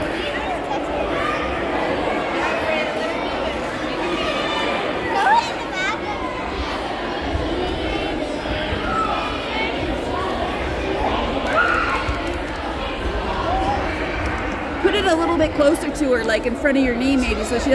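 Many children's voices chatter and shout in a large echoing hall.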